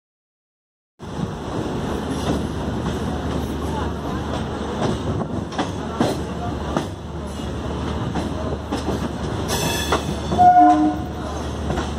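Train wheels rumble and clatter over rail joints close by.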